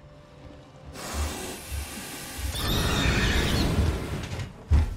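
A flamethrower roars in bursts.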